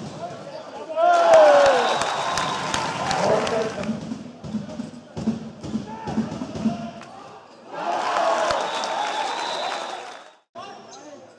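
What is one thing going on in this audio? A crowd cheers and shouts in an echoing sports hall.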